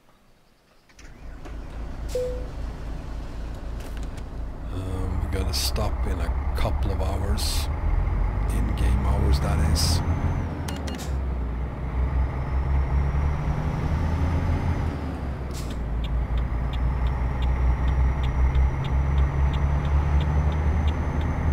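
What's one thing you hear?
A truck's diesel engine starts up and rumbles steadily.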